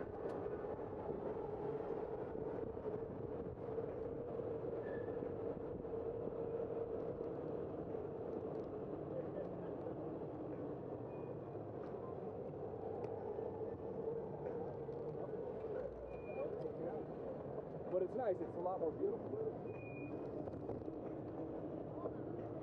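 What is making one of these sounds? Wind rushes steadily past a moving bicycle.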